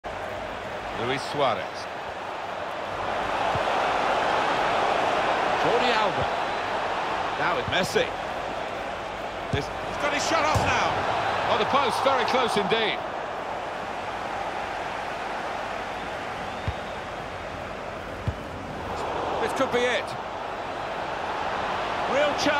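A large stadium crowd roars and cheers, swelling and fading.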